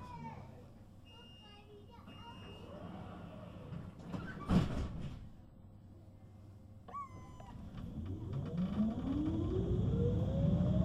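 A tram's interior rumbles as it rolls along.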